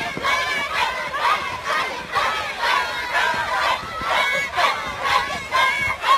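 A group of young people chant together in rhythm.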